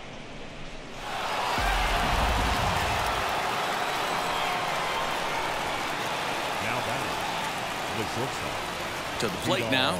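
A large crowd roars and cheers loudly.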